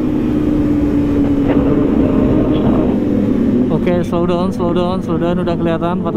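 A motorcycle engine roars up close as the bike rides along.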